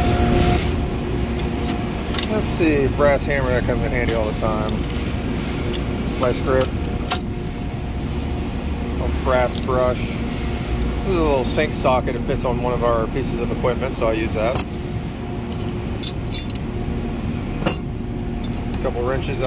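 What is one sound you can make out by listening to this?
Metal tools clink and rattle as they are picked up and set down.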